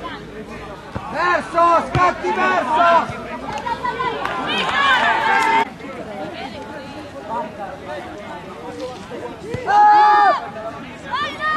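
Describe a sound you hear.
Spectators cheer loudly from close by.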